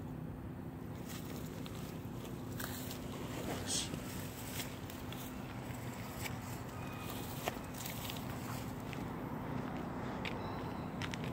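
Clothing rustles close by as a man moves.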